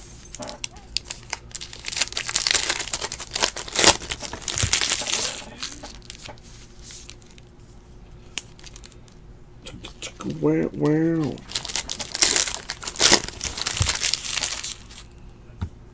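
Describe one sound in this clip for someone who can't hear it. A foil wrapper crinkles and tears in someone's hands.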